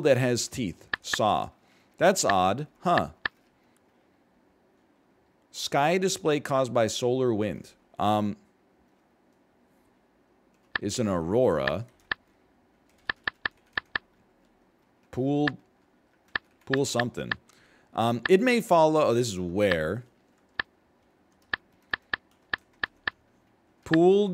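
A man speaks calmly and thoughtfully, close to a microphone, with pauses.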